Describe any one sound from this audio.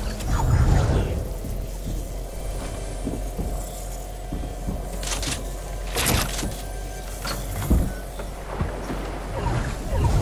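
Wooden panels snap into place with sharp knocks.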